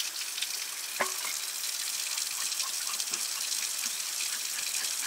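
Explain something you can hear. A knife cuts through a fish against a metal tray.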